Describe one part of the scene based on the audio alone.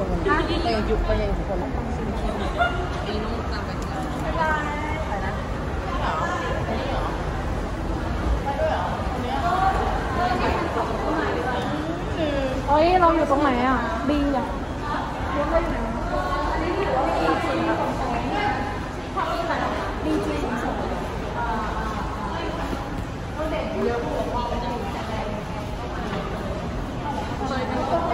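Young women talk and chatter excitedly close by.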